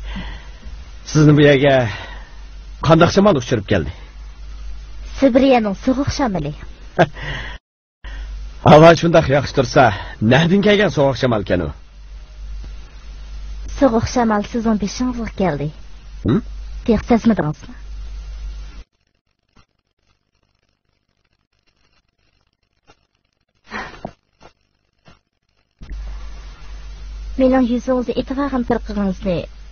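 A young woman talks softly and cheerfully, close by.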